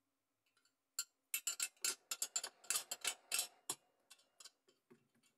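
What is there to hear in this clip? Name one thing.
A metal pick scrapes and clicks against small pieces of metal.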